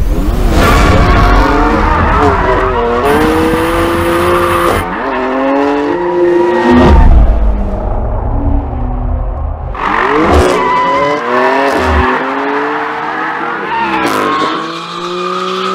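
Tyres squeal loudly on pavement.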